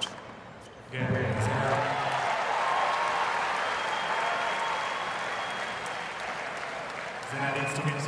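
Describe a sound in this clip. A large crowd cheers and applauds loudly, then slowly fades.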